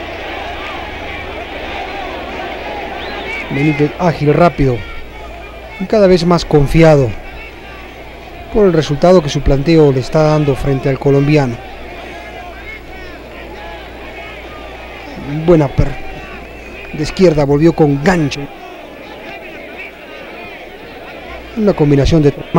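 A large crowd murmurs in an echoing arena.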